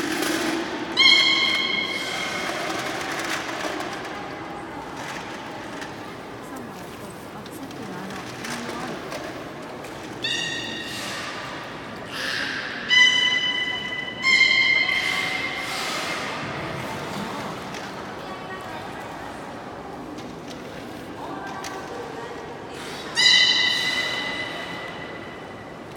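A beluga whale makes loud high chirping whistles.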